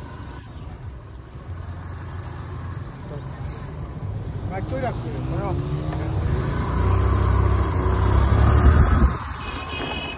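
A motor scooter engine hums steadily as it rides along.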